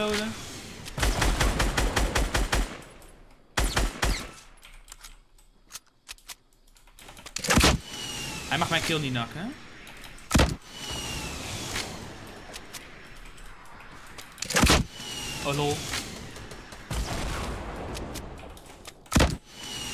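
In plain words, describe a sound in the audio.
Gunshots crack in rapid bursts and single sharp shots.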